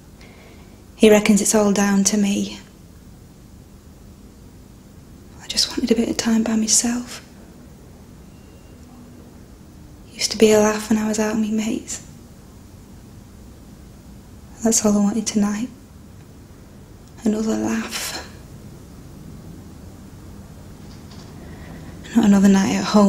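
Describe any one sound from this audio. A young woman speaks quietly and hesitantly, close by, with long pauses.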